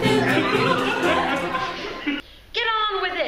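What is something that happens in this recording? A group of young people laugh and cheer together.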